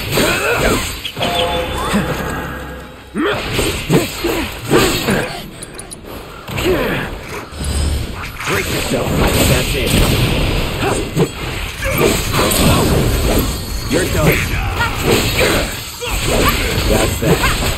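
Magic blasts crackle and burst loudly.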